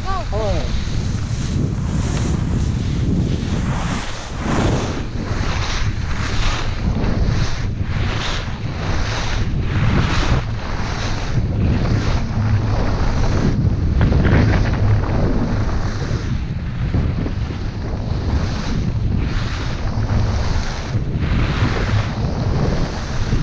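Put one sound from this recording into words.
Skis scrape and hiss rhythmically over hard snow.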